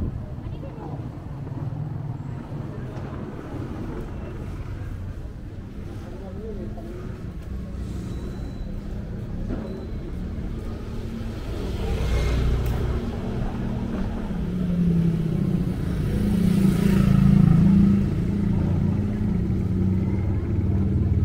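Outdoor street noise rumbles steadily.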